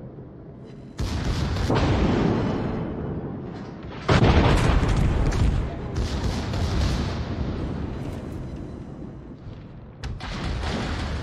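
Guns fire in loud rapid bursts.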